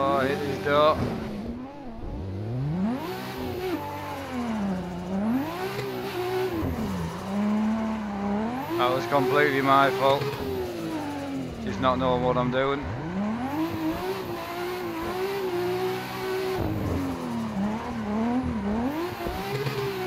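A car engine revs up and down loudly as the car drifts.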